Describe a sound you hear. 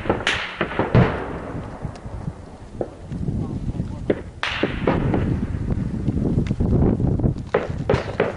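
A brush fire crackles and pops outdoors.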